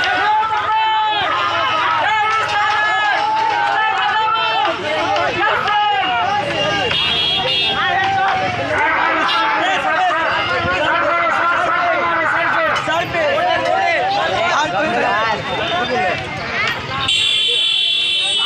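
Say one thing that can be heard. A crowd shouts and cheers loudly outdoors.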